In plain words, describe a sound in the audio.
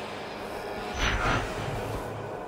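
A sharp whoosh bursts out.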